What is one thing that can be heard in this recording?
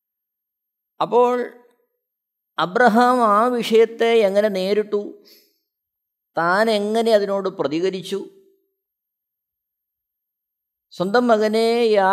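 A man speaks clearly and deliberately into a close microphone, with pauses.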